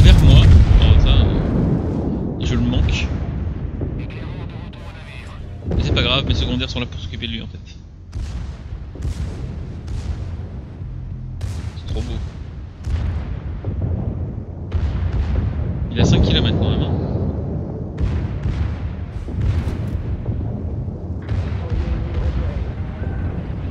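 Shells splash and explode in the water.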